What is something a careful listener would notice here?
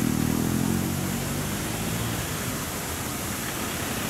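A motorcycle engine buzzes past.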